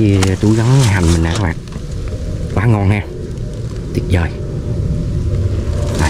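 A mesh net rustles as it is handled.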